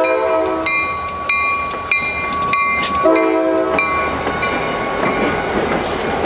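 Train wheels rumble and clatter over the rails close by.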